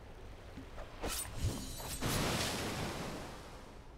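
Magic spells burst and whoosh loudly.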